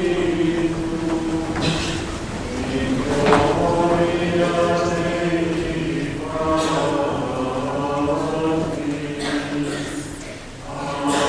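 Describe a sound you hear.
Male voices chant slowly together in a large echoing hall.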